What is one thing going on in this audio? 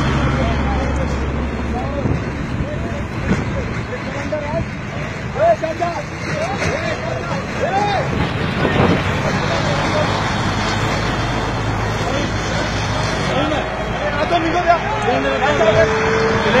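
Flames roar and crackle from a burning car.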